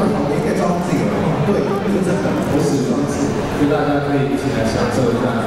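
A young man speaks with animation through a microphone over loudspeakers, echoing in a large space.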